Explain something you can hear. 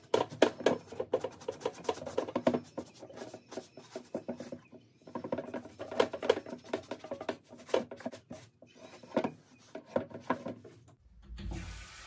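A brush scrubs briskly against leather in quick strokes.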